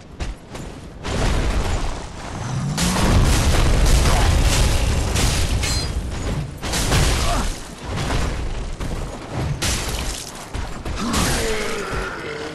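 Heavy weapons clash and thud in a fight.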